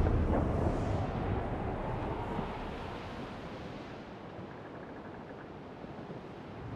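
Waves splash and rush against a sailing ship's hull, slowly growing quieter.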